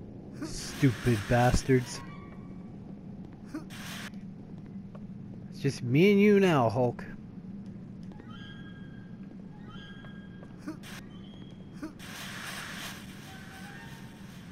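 A magical shimmering whoosh sounds.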